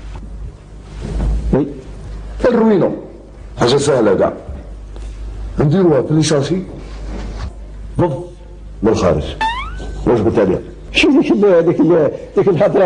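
An older man speaks calmly, close by.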